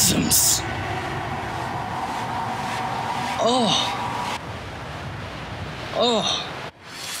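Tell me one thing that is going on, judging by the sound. A young man talks into a microphone.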